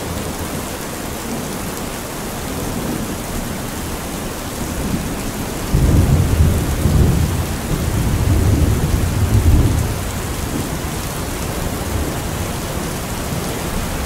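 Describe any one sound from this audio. Rainwater pours and splashes from the roof's edge.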